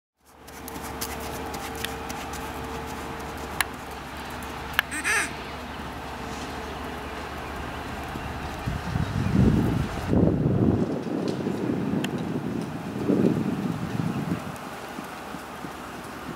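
A horse's hooves thud softly on sand.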